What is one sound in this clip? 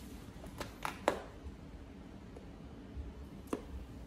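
A small plastic case clicks open.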